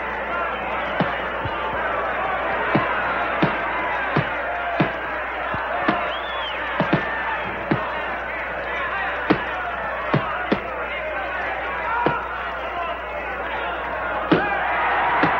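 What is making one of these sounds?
Boxing gloves thud against bodies.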